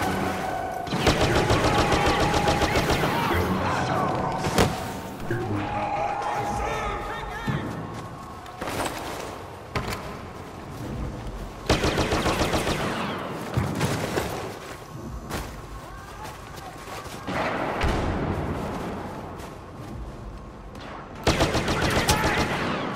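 Laser blasters fire in quick bursts of sharp zaps.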